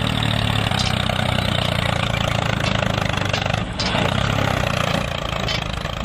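A toy tractor drives over sand.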